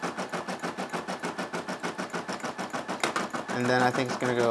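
A sewing machine stitches with a fast, steady rattle.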